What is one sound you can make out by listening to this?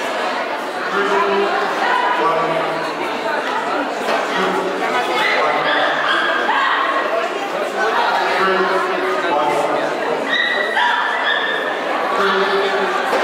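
A small dog barks excitedly.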